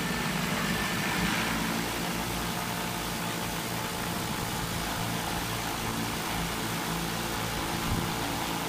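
A drone's propellers whir with a steady loud buzz overhead.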